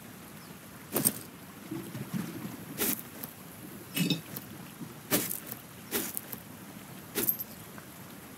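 Menu clicks tick sharply, a few times.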